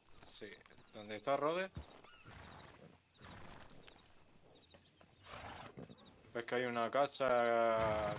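Horses' hooves thud slowly on a dirt road.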